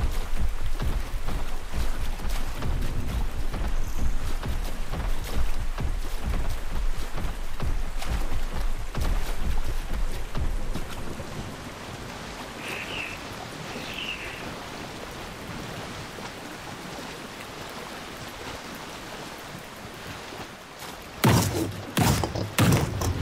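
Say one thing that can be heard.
A large creature swims and splashes through water.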